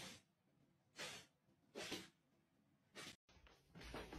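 A dog barks sharply nearby.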